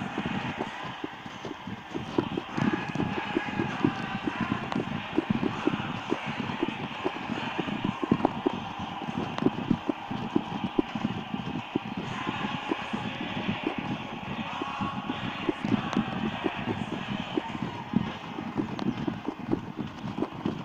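Wind buffets loudly against the microphone of a moving car.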